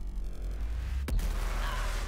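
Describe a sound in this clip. A large explosion booms with a deep rumble.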